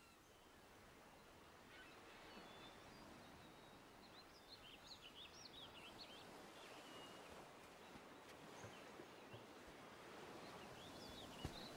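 Gentle waves wash softly onto a shore.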